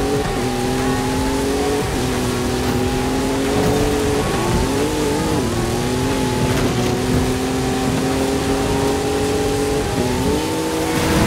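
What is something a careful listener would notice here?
A racing engine roars steadily, shifting gears as it speeds up.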